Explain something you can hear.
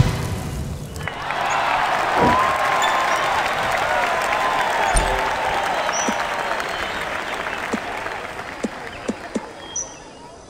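A golf ball whooshes through the air.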